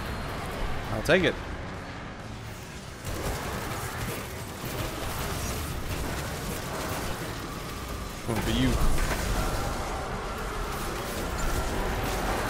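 Energy weapons fire and blast in rapid bursts.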